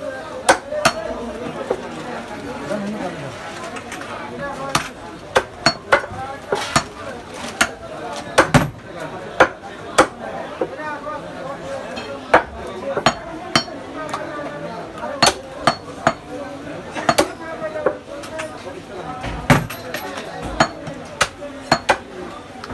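A cleaver chops sharply into a wooden block, again and again.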